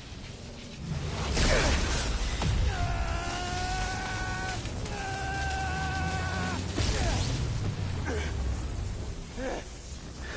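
Electricity crackles and roars in a loud burst of energy.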